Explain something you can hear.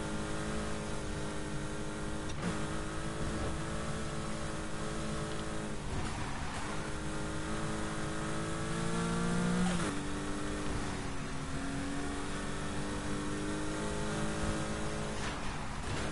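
A sports car engine roars at high revs, its pitch rising and dropping with gear shifts.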